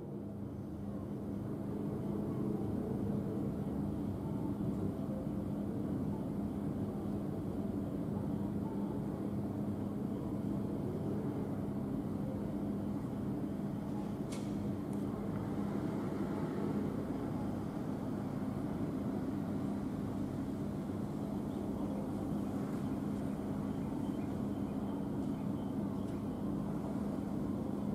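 A stopped electric train hums steadily.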